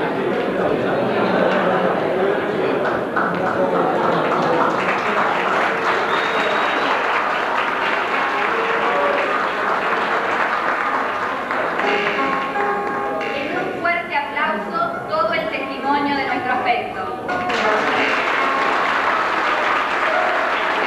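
A crowd murmurs and chatters in a hall.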